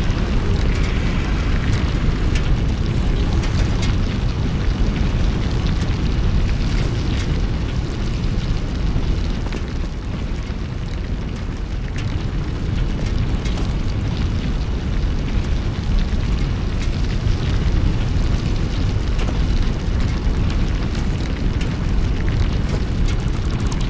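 Machinery hums and rumbles steadily.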